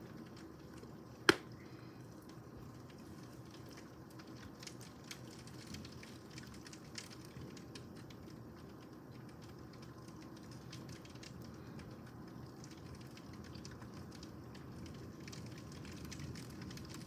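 Raindrops tap against a window pane.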